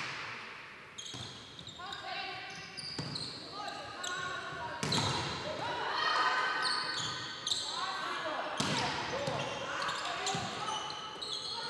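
Young women players call out to each other across the court.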